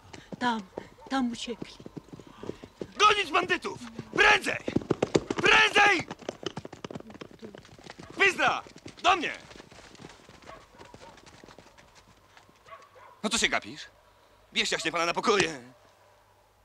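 A man shouts with agitation close by.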